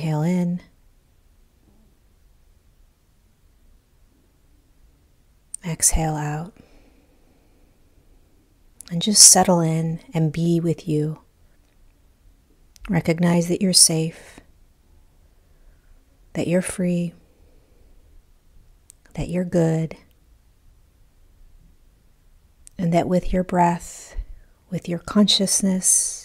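A woman speaks slowly and calmly into a close microphone, pausing between phrases.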